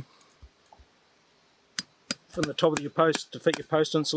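A metal tool clicks against a wire.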